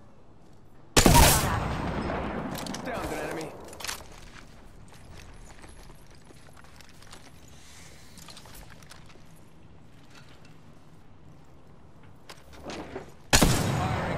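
A rifle fires loud rapid bursts.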